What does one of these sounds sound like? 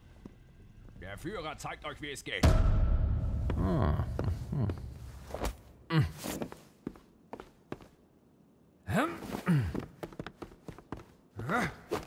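A man speaks in a deep, theatrical voice.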